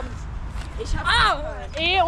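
A boy shouts with excitement.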